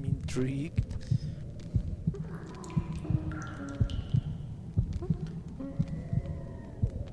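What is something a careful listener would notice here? Footsteps thud on a stone floor in a steady walking rhythm.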